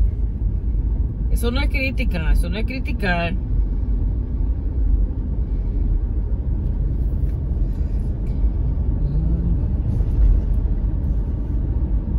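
A car engine hums and tyres rumble steadily on the road.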